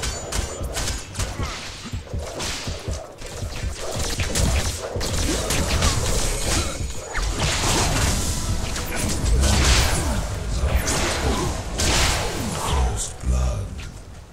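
Weapons clash and spells burst in a video game fight.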